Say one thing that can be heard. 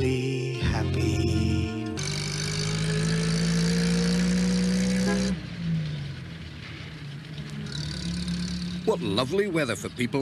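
A small van's engine hums as it drives along.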